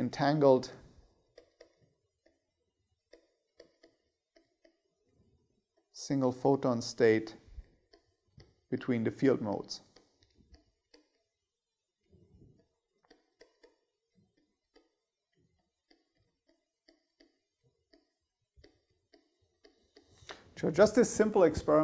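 A pen taps and scratches on a tablet.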